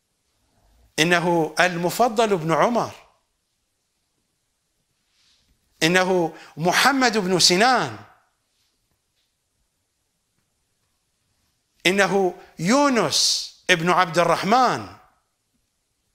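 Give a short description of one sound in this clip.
An older man speaks calmly into a microphone, in short phrases with pauses.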